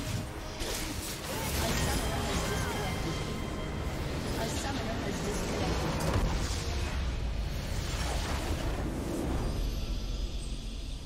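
Loud game battle effects clash, zap and explode.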